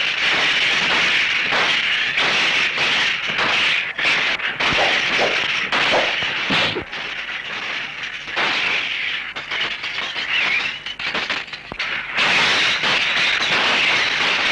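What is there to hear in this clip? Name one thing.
Wooden sticks clack together in a fight.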